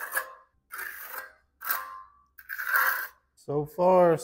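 A trowel scrapes over wet concrete in short strokes.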